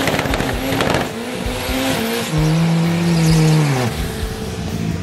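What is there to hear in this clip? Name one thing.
A car engine revs hard and loud, rising and falling in pitch.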